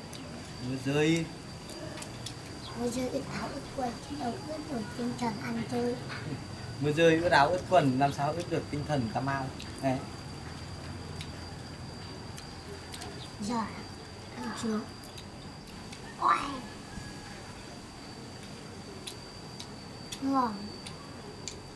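A young boy talks and laughs nearby.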